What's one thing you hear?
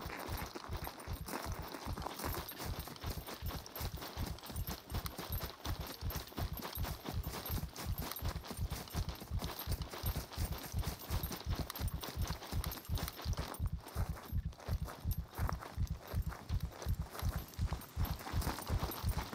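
Footsteps tread steadily on grass and dirt.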